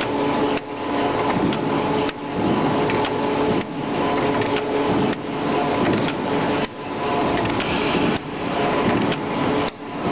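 Metal parts click and clack sharply inside a machine.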